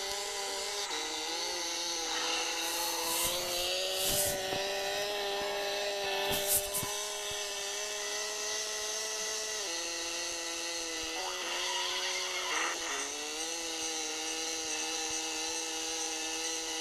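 A kart engine hums steadily, shifting pitch as it speeds and turns.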